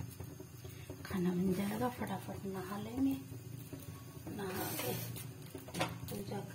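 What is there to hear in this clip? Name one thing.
A middle-aged woman speaks close by, in short bursts.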